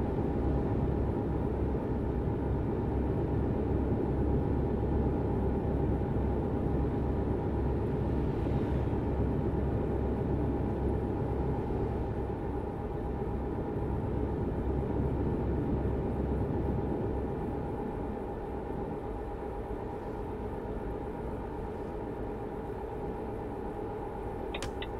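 Tyres hum on a motorway.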